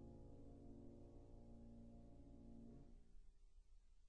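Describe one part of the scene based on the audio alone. A woman sings a long, steady note close by.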